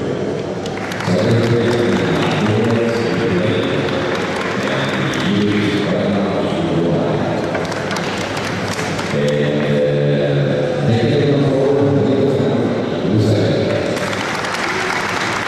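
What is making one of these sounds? A small crowd claps their hands.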